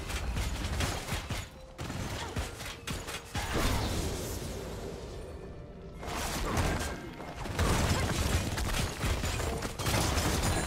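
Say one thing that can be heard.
Magic blasts whoosh and crack in quick bursts during a fantasy battle.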